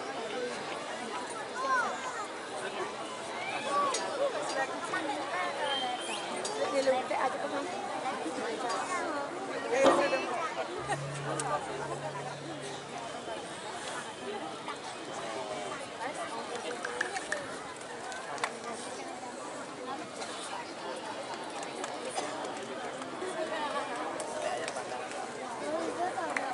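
A large ensemble of struck metal percussion instruments plays fast, ringing music.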